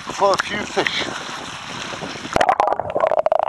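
Water laps and splashes at the surface.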